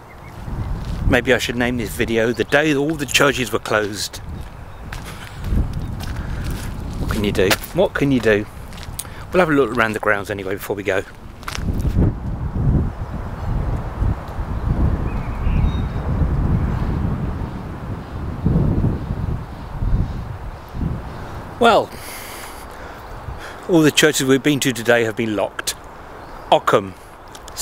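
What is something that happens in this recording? A middle-aged man talks calmly and close up outdoors.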